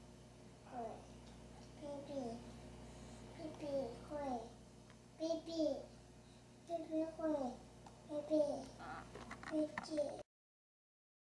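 A small child sings in a high, lilting voice close by.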